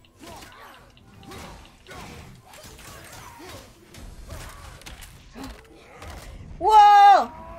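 Heavy weapons strike and thud in a close fight.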